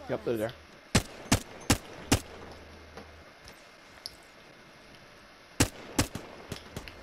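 Gunshots fire in short sharp bursts.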